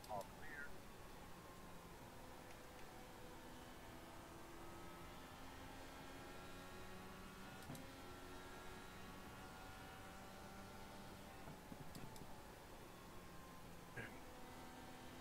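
A racing car engine drones at high revs, its pitch rising and falling with gear changes.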